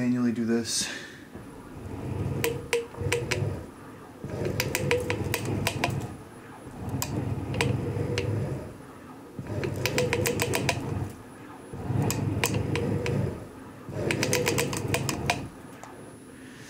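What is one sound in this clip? An electric linear actuator motor whirs and hums in repeated bursts, pausing briefly between runs.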